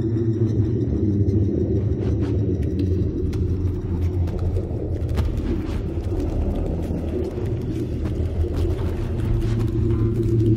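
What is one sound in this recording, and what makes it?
Musicians play droning electronic music that fills a large echoing hall.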